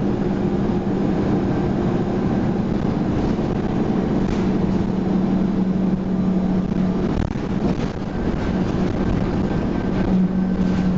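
The bus interior rattles and clatters as it moves over the road.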